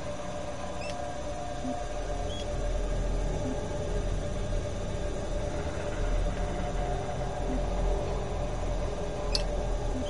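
Short electronic blips chirp now and then.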